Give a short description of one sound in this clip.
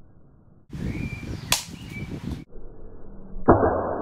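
A pellet clanks against a hanging metal target.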